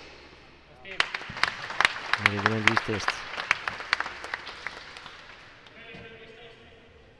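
A crowd applauds and claps.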